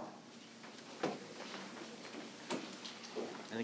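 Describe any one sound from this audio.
Chairs knock and shuffle as people sit down.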